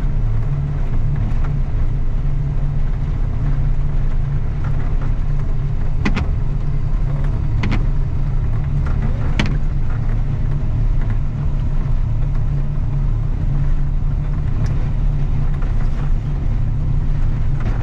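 A snow plow blade scrapes and thumps over a snowy road.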